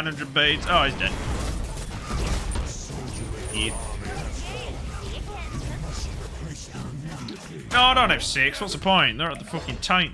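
Magic blasts and explosions crash in a video game battle.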